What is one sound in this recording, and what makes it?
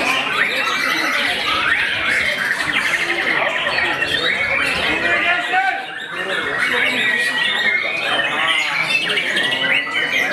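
A songbird sings loud, rapid, varied trills and whistles close by.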